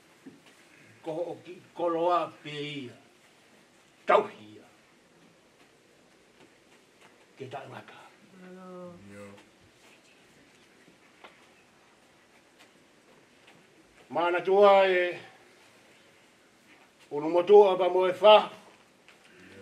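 A middle-aged man speaks slowly and solemnly into a microphone, in bursts with long pauses.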